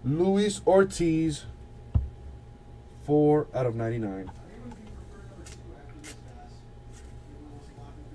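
Trading cards shuffle and tap against each other.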